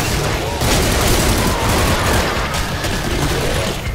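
Monsters growl and shriek.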